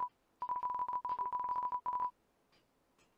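A game's text beeps rapidly as dialogue types out.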